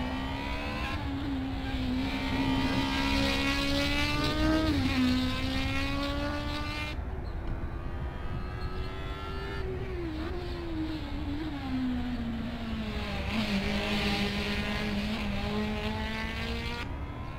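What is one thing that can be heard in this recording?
A racing car engine roars steadily, its pitch rising and dipping as the driver shifts and brakes.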